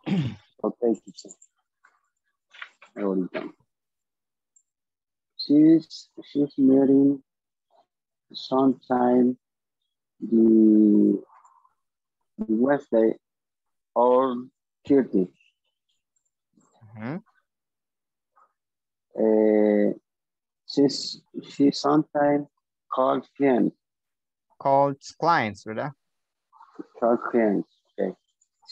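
A woman speaks calmly through an online call, in short phrases with pauses.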